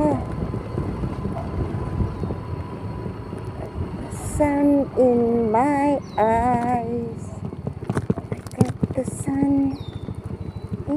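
A motorcycle engine rumbles steadily while riding slowly.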